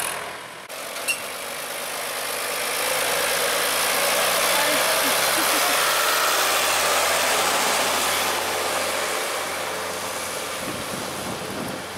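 A towed harvester rattles and clanks along the road.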